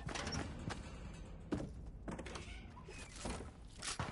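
Footsteps thud on wooden floorboards.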